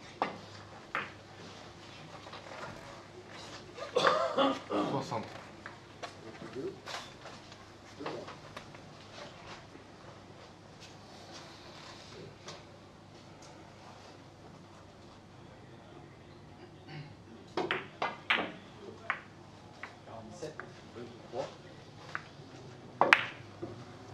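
A cue sharply strikes a billiard ball.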